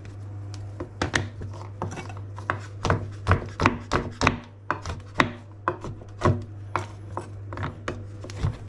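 A knife chops through chocolate on a wooden board with sharp, rapid knocks.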